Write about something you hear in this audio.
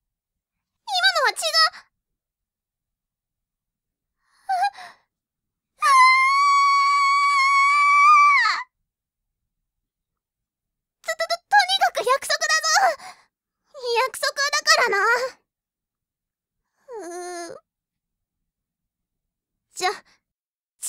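A young woman speaks in short, theatrical bursts, close to a microphone.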